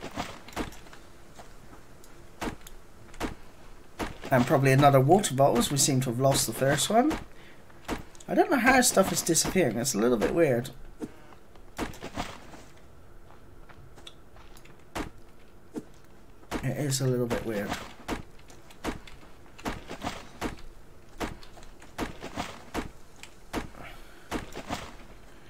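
An axe chops into a tree trunk with repeated sharp thuds.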